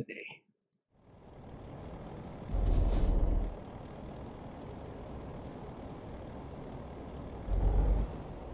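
A truck engine rumbles steadily as the truck drives off.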